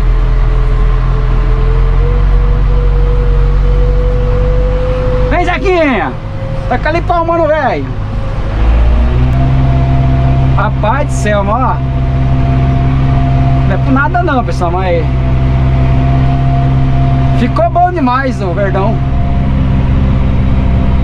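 A tractor engine hums steadily from inside a closed cab.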